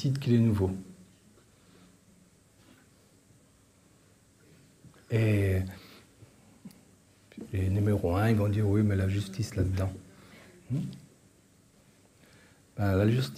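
An elderly man speaks calmly and close by, with pauses.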